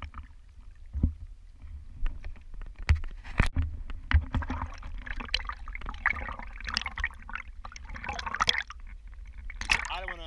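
Water splashes and laps against a kayak's hull.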